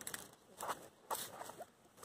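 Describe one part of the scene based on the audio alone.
A puppy chews on a dry stalk.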